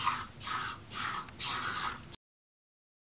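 A small robot's motor whirs in short bursts.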